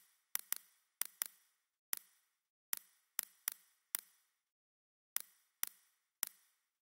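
Short, sharp key clicks sound one at a time as letters are typed on a keyboard.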